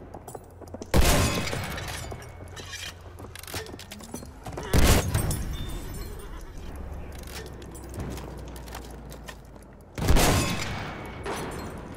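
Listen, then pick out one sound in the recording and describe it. A heavy gun fires loud booming shots that echo and fade.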